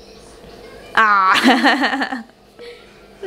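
A toddler girl squeals and laughs with delight.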